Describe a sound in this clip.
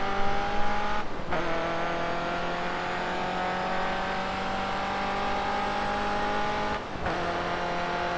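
A racing car engine drops in pitch briefly as the gear shifts up.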